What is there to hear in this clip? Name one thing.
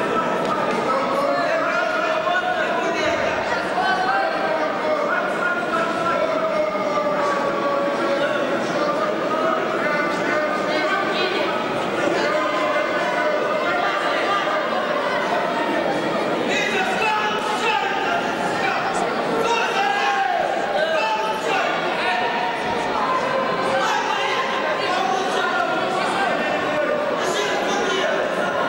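A crowd of spectators talks and calls out in a large echoing hall.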